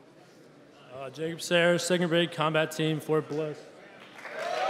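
A young man speaks loudly through a microphone in a large echoing hall.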